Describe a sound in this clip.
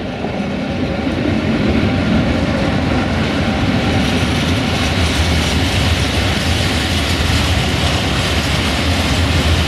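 Freight wagons rumble and clatter loudly past on the rails.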